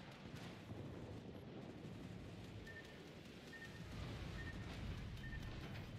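Shells splash and burst into the sea nearby.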